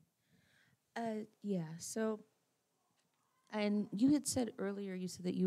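A woman speaks into a microphone in a calm, clear voice.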